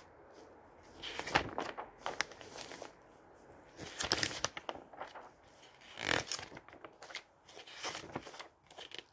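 Glossy magazine pages rustle and flap as they are turned.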